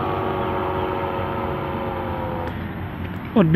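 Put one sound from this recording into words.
A paramotor engine drones overhead in the distance.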